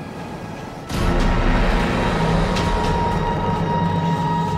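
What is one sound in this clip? Large creatures roar and screech close by.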